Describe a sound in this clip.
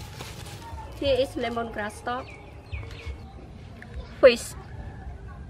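A young woman speaks brightly and close by.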